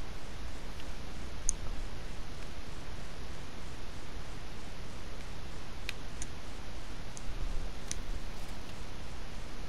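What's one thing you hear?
Paper rustles softly as a map is handled.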